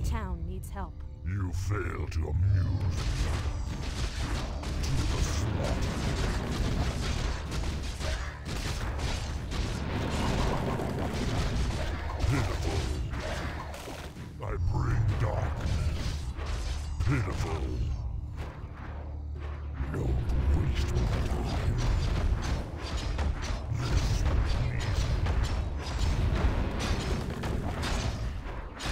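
Game spell effects and attacks crackle and clash throughout.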